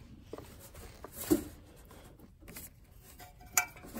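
Metal tools clink and knock against an engine.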